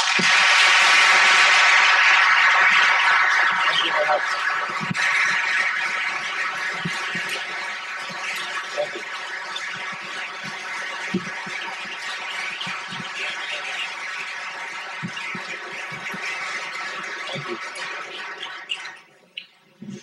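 A large audience applauds loudly, slowly fading.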